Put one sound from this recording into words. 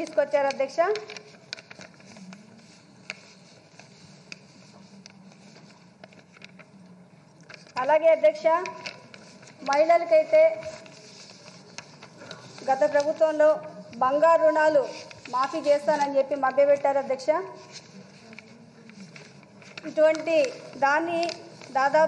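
A young woman reads aloud into a microphone, pausing between phrases.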